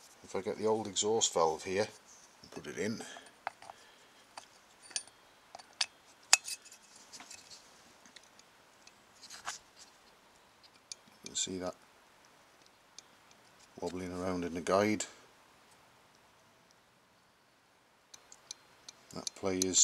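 Small metal engine parts click and tap against each other.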